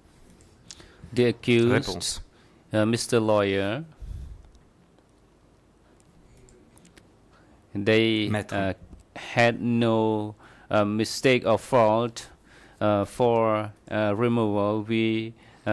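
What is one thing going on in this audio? An elderly man speaks steadily into a microphone, with pauses.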